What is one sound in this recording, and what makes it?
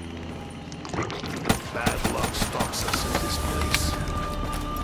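A rifle fires several rapid shots.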